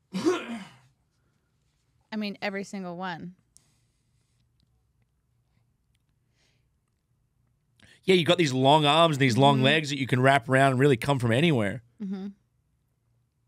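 A man talks with animation into a microphone, with pauses.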